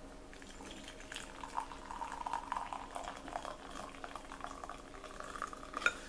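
Water pours into a mug.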